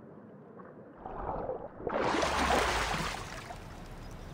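Water splashes loudly as someone climbs out onto rock.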